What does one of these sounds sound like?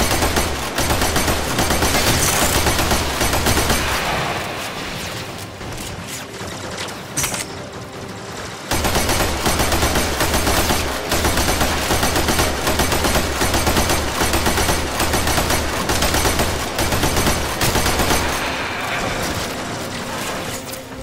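Rapid gunfire blasts loudly and without a break.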